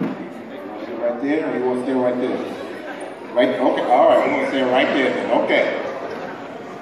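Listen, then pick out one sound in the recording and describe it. A man speaks with animation into a microphone over loudspeakers in a large echoing hall.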